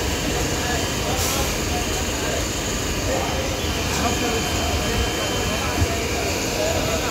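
A train rolls past with a steady low rumble and rattle.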